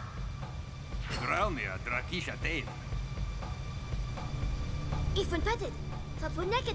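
A young woman speaks sharply.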